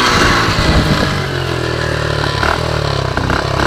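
A motorcycle engine idles with a steady putter.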